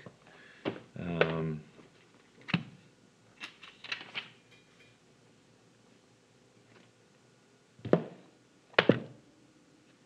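A hand knocks and rubs against a phone close by.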